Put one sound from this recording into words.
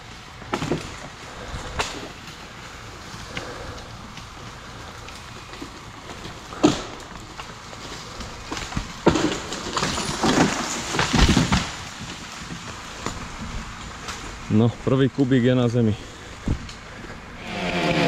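Dry leaves crunch underfoot as someone walks.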